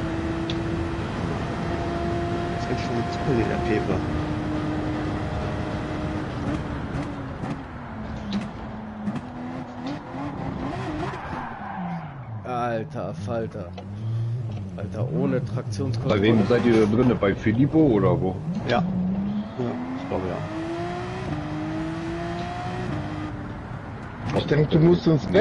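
A racing car engine roars at high revs, dropping in pitch as it slows and climbing again as it speeds up.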